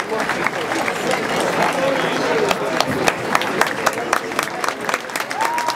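A crowd cheers.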